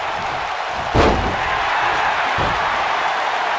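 Heavy thuds of bodies slamming onto a wrestling ring mat.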